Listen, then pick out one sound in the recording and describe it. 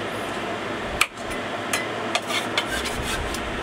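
A cleaver knocks against a pan.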